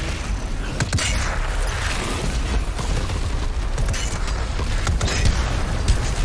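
A video game gun fires rapid shots.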